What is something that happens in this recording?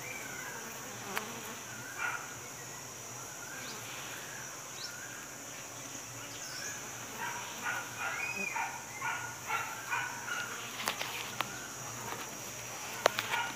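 Honeybees buzz steadily close by.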